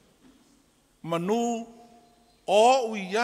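An elderly man speaks slowly into a microphone, heard over a loudspeaker.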